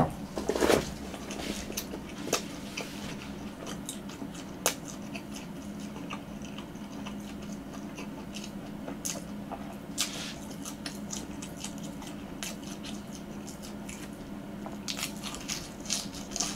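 A young man chews crunchy food with soft crunching clicks close to a microphone.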